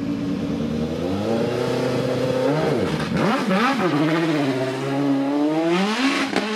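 A racing car engine revs loudly, rising and falling in pitch.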